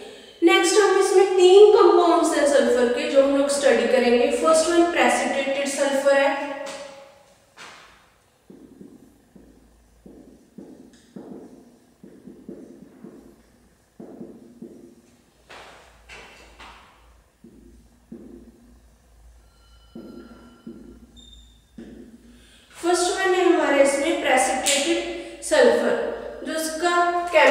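A woman speaks calmly and clearly into a nearby microphone.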